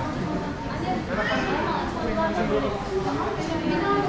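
Adults and children chat in a crowd nearby, in an echoing hall.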